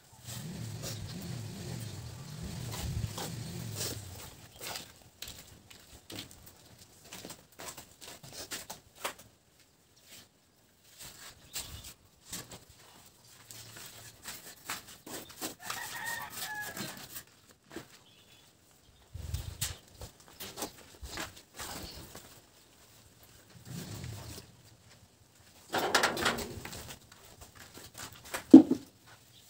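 Trowels scrape and tap against a concrete block wall.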